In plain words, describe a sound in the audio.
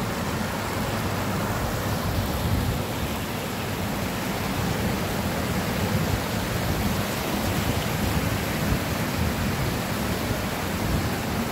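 Shallow water rushes and splashes steadily over rocks outdoors.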